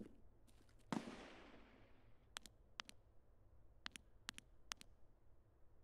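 Gunshots fire in quick bursts and echo in a narrow tunnel.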